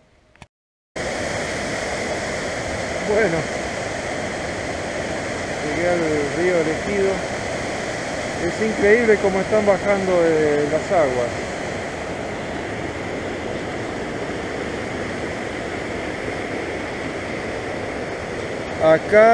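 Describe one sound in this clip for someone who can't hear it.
A stream rushes over rocks nearby.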